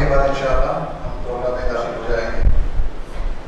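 A young man speaks into a microphone over a loudspeaker in an echoing room.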